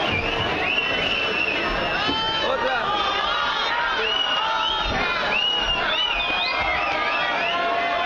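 A man sings through a microphone and loudspeakers.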